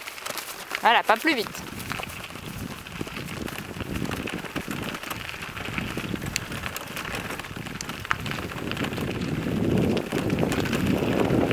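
A horse's hooves clop slowly on a gravel track.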